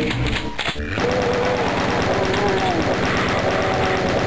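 Fast energy shots fire in a video game.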